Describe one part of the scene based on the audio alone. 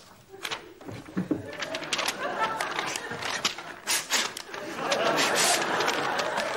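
Paper rustles and crinkles in a man's hands.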